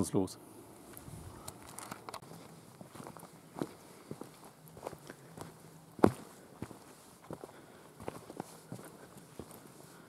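Footsteps crunch softly on a dirt path.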